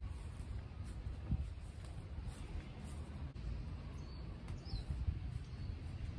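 Footsteps swish through grass and fade away.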